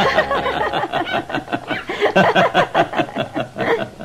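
A boy laughs happily.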